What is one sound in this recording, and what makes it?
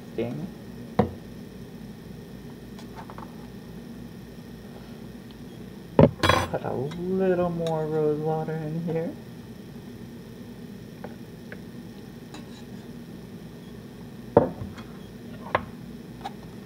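A metal strainer clinks against a glass jar.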